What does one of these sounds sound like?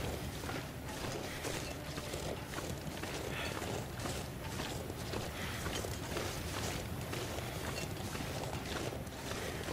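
Footsteps crunch through snow at a walking pace.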